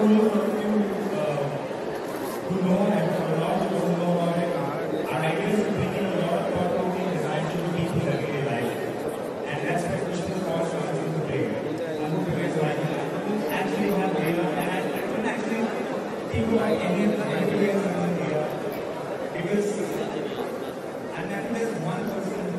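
A man speaks with animation into a microphone, heard through loudspeakers in a large room.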